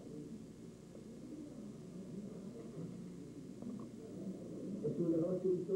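An elderly man speaks quietly nearby.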